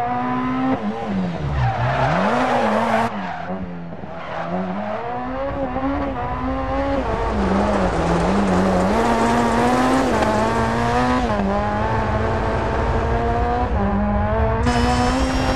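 A rally car engine revs hard and rises and falls in pitch as it shifts gears.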